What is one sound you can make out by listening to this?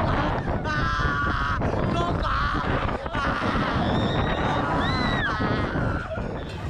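Wind rushes past a microphone.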